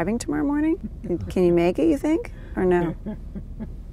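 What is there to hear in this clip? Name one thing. A young woman speaks and laughs softly nearby.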